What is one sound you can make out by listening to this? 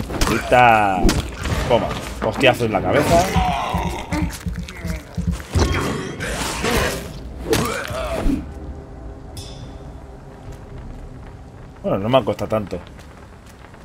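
A man shouts with animation close to a microphone.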